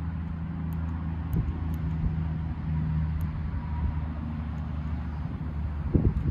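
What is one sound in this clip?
A grease gun clicks and rattles as it is handled.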